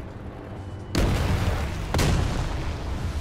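Shells explode nearby with loud, sharp booms.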